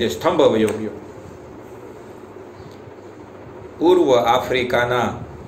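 A young man speaks calmly, close up.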